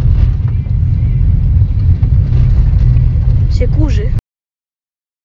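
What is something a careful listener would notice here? A car engine and road noise rumble steadily from inside a moving car.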